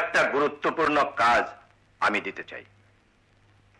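A man speaks with a raised voice, close by.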